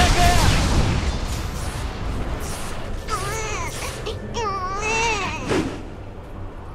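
Magic spells crackle and clash in a fight.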